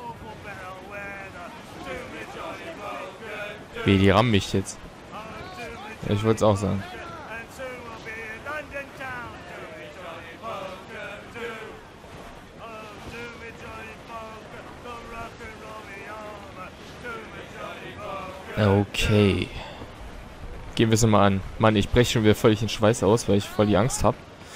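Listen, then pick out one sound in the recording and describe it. Waves roll and splash against a sailing ship.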